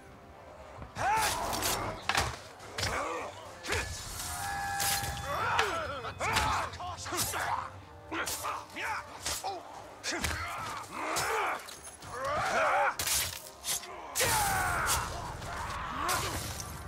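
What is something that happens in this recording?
Blades clash and strike in a fast melee fight.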